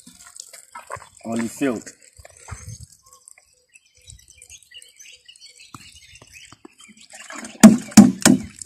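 Water trickles from a watering can onto soil.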